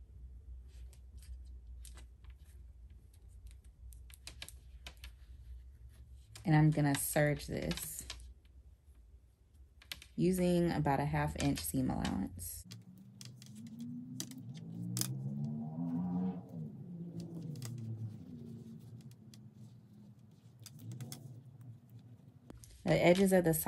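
Fabric rustles softly as it is handled.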